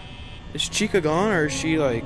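A button clicks once.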